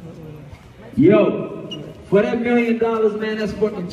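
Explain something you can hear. A man speaks loudly into a microphone, heard through loudspeakers.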